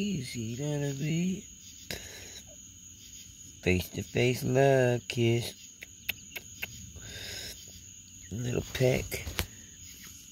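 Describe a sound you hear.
A pig squeals and grunts close by.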